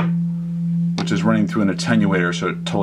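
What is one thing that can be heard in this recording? A synthesizer sings warbling, shifting tones.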